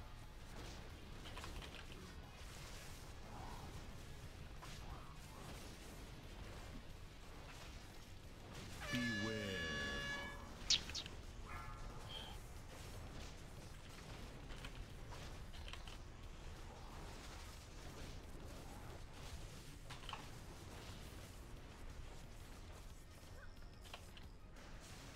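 Magic spells whoosh and crackle in a busy fantasy battle.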